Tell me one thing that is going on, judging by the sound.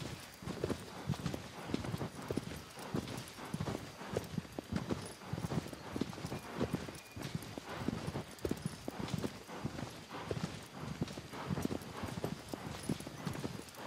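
A horse's hooves thud rhythmically on soft ground at a gallop.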